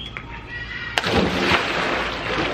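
A boy splashes into a pool with a loud splash.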